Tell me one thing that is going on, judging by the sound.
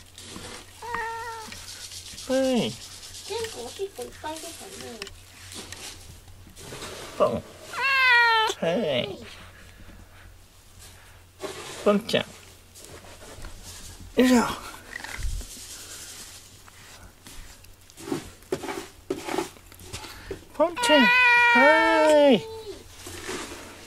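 A cat meows loudly several times.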